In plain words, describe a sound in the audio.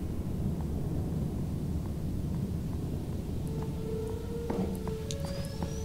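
Steam hisses from a leaking pipe.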